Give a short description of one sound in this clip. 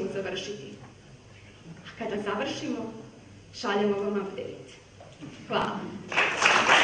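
A young woman speaks into a microphone.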